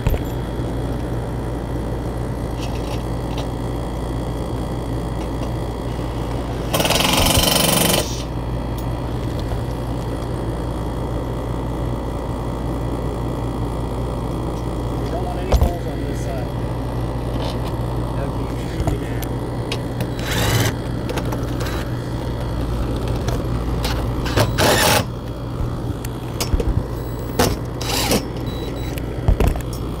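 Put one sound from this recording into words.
Tools clink and knock on a metal roof.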